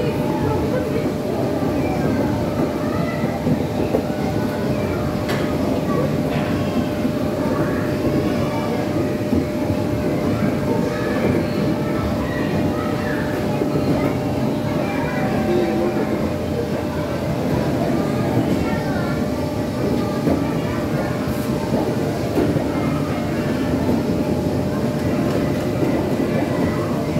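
A strong fan roars steadily inside a machine.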